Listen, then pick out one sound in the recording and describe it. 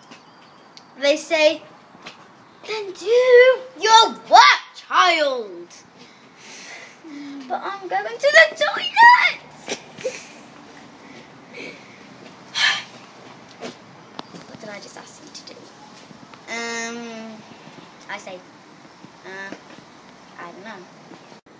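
A young girl speaks and sings expressively close by.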